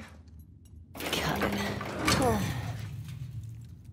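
A heavy metal lever clunks and the safe door unlatches with a creaking groan.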